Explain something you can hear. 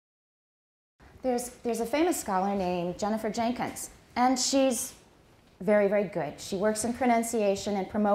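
A middle-aged woman speaks calmly into a handheld microphone.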